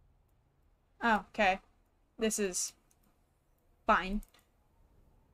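A young woman speaks with animation into a microphone, in short bursts.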